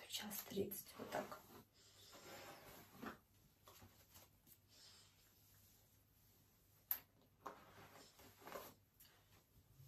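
A hairbrush brushes through hair.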